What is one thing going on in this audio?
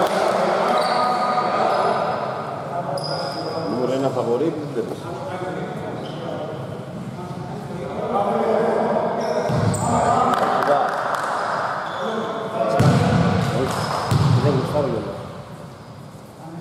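Young men call out to each other, echoing in the hall.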